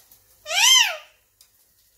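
A parrot lets out a loud, sharp screech.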